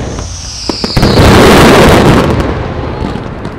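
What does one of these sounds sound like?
A firework bursts with a loud, roaring boom.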